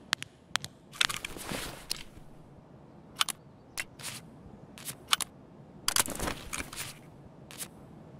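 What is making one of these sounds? Gear rustles and clicks as items are handled.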